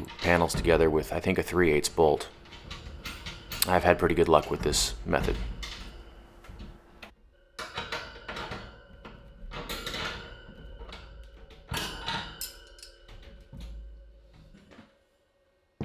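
Metal shelf parts clink and rattle as they are fitted together.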